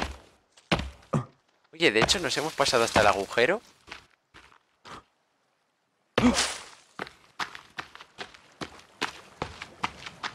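Footsteps rustle through grass at a steady walking pace.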